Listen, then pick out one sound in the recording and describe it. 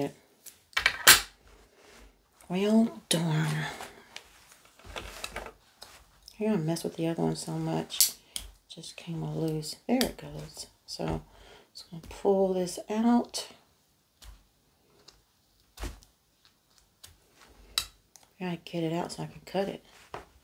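Small tools click and tap on a table.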